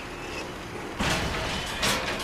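A metal lattice gate rattles and clanks open.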